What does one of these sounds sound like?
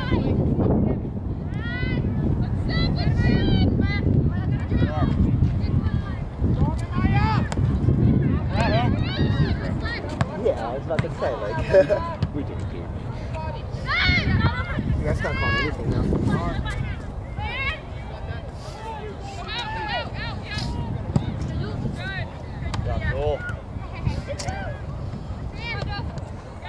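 Young women shout and call out to each other across an open outdoor field.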